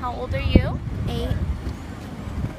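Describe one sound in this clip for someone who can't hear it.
A young boy speaks close by.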